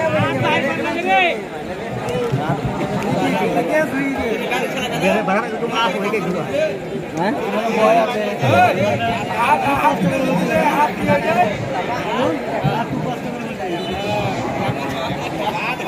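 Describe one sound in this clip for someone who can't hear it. A large crowd of people shouts and cheers outdoors.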